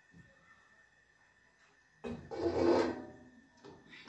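A metal pan scrapes onto an oven rack.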